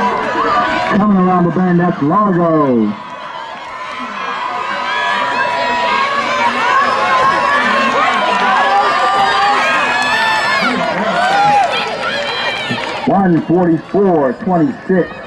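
A woman shouts encouragement loudly close by.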